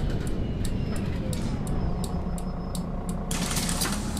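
Bus doors clatter and click open.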